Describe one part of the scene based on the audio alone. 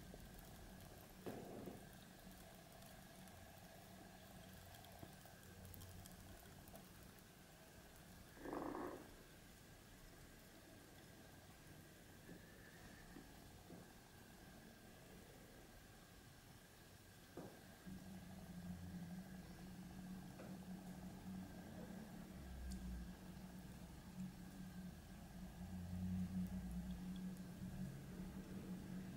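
Soda fizzes softly in a glass, its bubbles crackling.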